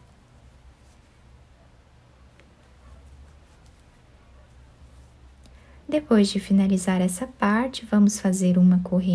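A crochet hook softly pulls yarn through stitches.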